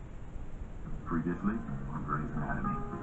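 A woman speaks calmly, heard through a television speaker.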